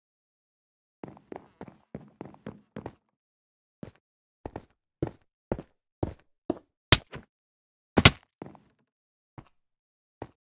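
Blocks are set down with short, dull knocks.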